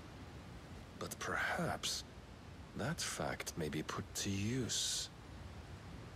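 A man speaks calmly and slowly.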